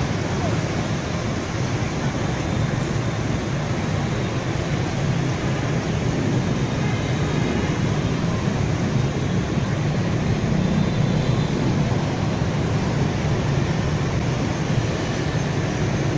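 Heavy traffic of motorbikes and cars rumbles steadily along a busy road.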